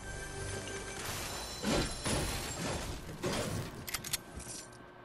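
A treasure chest bursts open with a bright chiming jingle.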